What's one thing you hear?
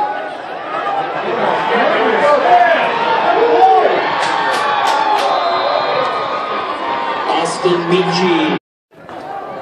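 A crowd cheers and shouts loudly in an open stadium.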